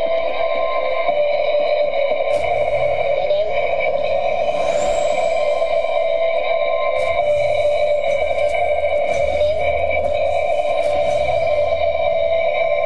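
Steady electronic game music plays throughout.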